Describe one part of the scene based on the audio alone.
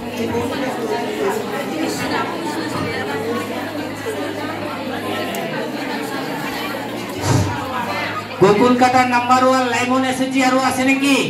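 A crowd of women chatters and talks over one another in an echoing hall.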